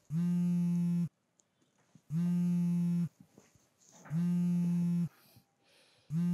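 A phone alarm beeps loudly in long, steady, repeated tones.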